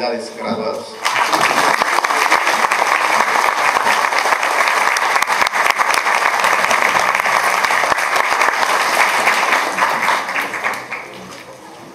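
A large audience applauds in an echoing hall and then dies down.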